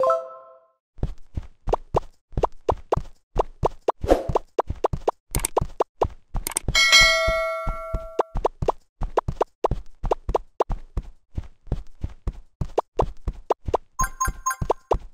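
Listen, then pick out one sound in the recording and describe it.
Quick game pops sound in a fast, uneven stream.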